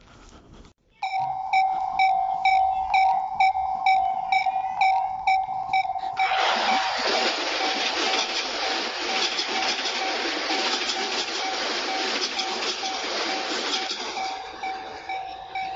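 A railway crossing bell clangs in an even rhythm.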